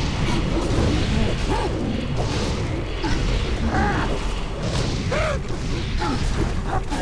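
Magic spell effects whoosh and crackle steadily.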